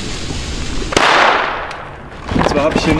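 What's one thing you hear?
A firework bursts with a loud bang.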